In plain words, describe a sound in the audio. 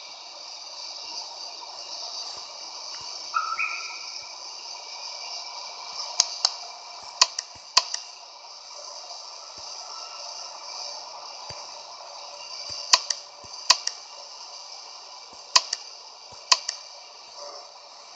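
A jet engine whines steadily at idle.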